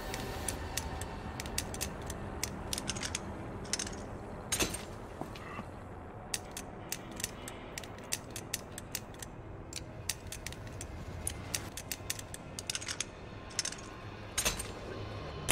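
Dials of a combination lock click as they turn.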